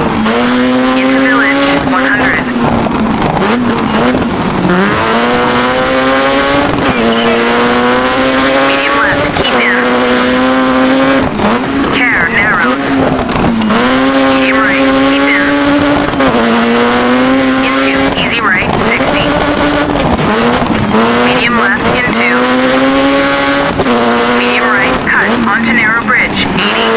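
A rally car engine revs hard, rising in pitch and dropping sharply with each gear change.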